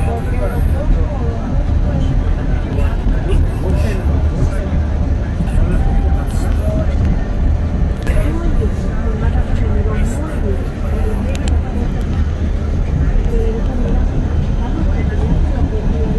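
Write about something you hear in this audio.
A vehicle engine rumbles steadily, heard from inside.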